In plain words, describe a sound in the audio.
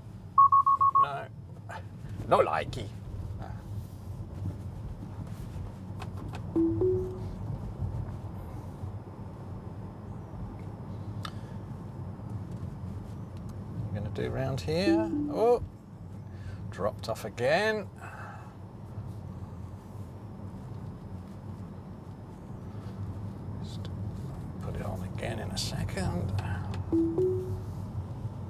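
Tyres of an electric car rumble on tarmac, heard from inside the cabin.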